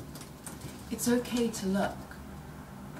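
A young woman speaks briefly and calmly close by.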